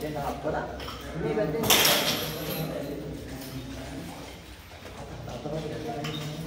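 A man speaks firmly, giving instructions in an echoing hall.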